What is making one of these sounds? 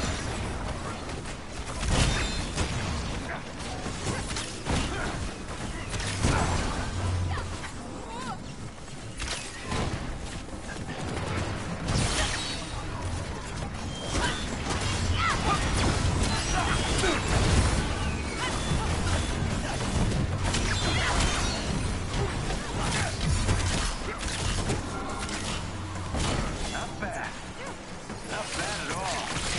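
Energy blasts and laser beams crackle and boom.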